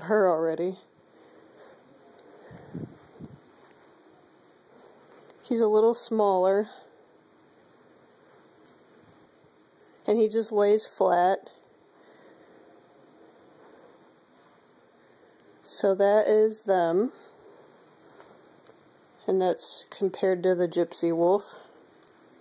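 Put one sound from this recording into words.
A plush toy dog lets out loud, short electronic howls each time it is squeezed.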